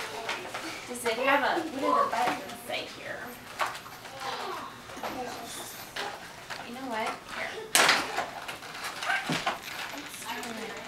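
A woman talks cheerfully nearby.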